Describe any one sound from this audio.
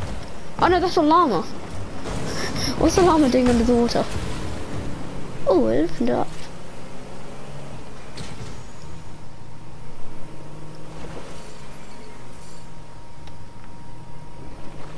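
A boat engine hums steadily while the boat speeds over water.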